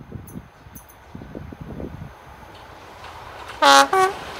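A train rumbles as it approaches along the tracks.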